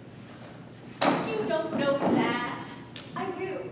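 A young woman speaks loudly and with feeling in a large hall.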